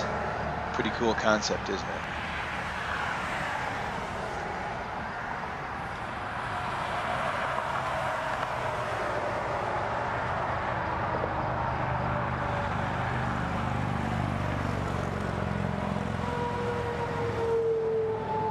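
Traffic roars steadily along a nearby highway.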